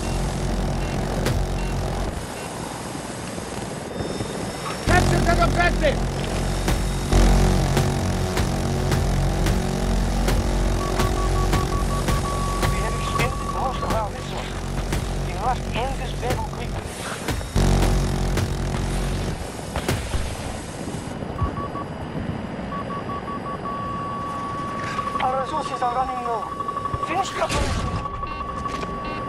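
A helicopter engine and rotor drone steadily and loudly.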